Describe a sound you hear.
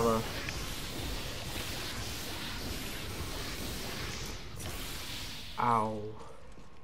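Lava bubbles and hisses steadily.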